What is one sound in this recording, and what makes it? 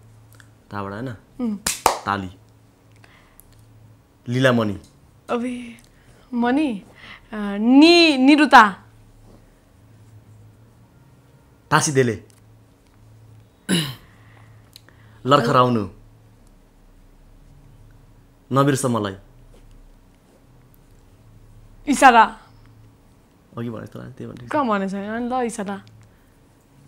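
A young woman talks with animation close to a lapel microphone.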